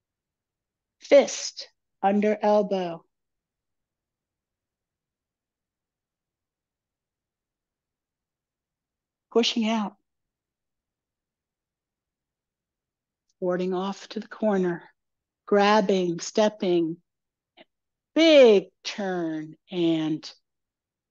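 A woman speaks calmly through a headset microphone, in short phrases with pauses.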